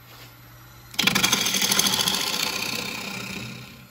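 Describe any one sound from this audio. A gouge scrapes and cuts into spinning wood with a loud rasping hiss.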